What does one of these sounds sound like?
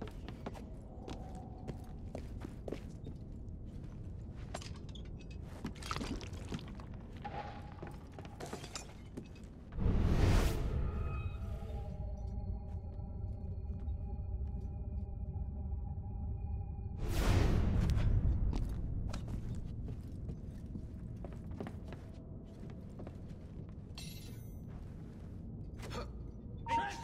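Footsteps tap on stone and wood.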